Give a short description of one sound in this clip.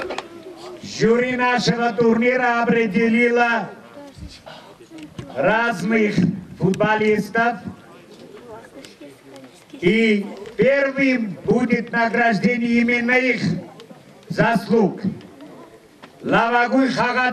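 A man speaks loudly and slowly through a loudspeaker.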